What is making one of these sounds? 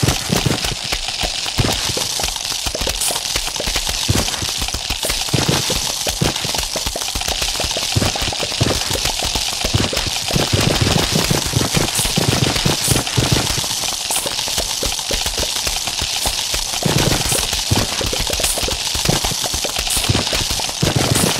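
Rapid soft puffing bursts repeat over and over.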